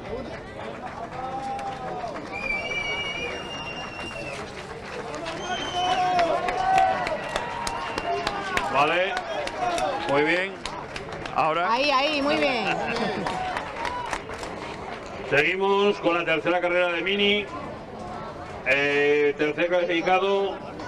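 People clap their hands outdoors.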